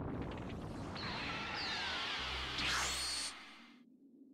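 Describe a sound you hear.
A glowing energy blast swells with a rising, crackling whoosh.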